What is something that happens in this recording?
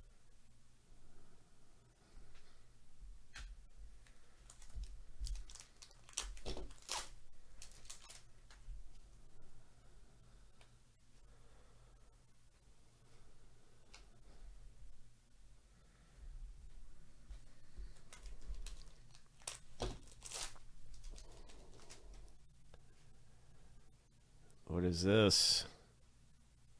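Cards slide and rustle against each other in hands.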